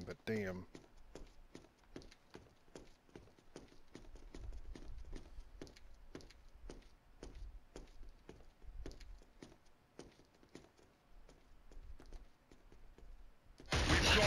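Footsteps tap steadily on hard concrete.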